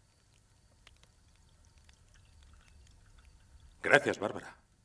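Coffee pours from a pot into a cup.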